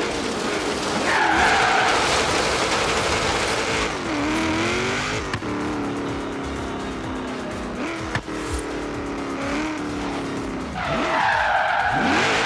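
Tyres screech as a car drifts and skids.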